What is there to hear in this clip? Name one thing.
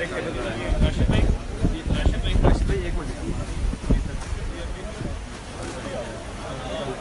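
Several men talk over one another around a table outdoors.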